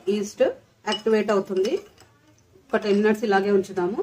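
A metal spoon scrapes and clinks against a ceramic bowl.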